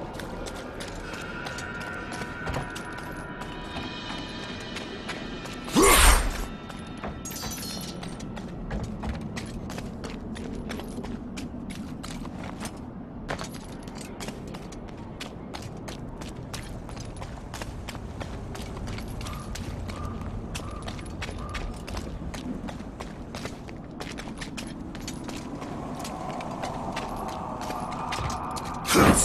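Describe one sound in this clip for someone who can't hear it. Footsteps patter on stone as a warrior runs.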